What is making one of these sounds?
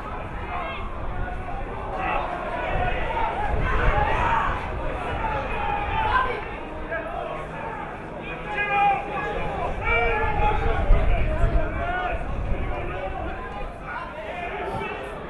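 Men shout and call out to each other outdoors across an open field.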